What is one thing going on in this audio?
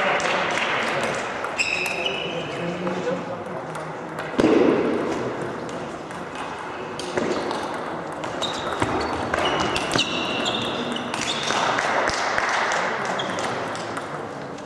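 A ping-pong ball clicks back and forth between paddles and the table in a large echoing hall.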